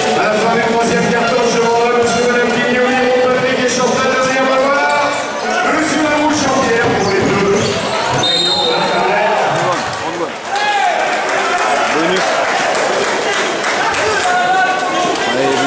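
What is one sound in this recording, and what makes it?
A large crowd chants and sings loudly in an echoing arena.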